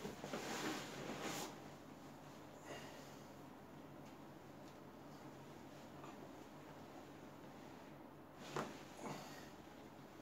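A padded table creaks softly as a body is pressed and shifted on it.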